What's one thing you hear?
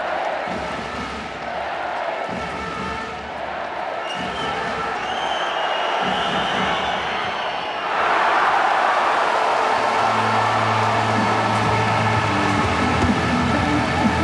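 A large crowd cheers and roars in a big echoing arena, growing louder partway through.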